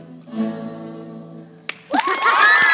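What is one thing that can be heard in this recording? An acoustic guitar rings out with a strummed chord.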